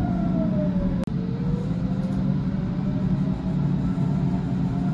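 Another train rushes past close by.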